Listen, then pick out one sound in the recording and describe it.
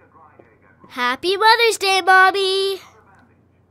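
A young boy sings cheerfully.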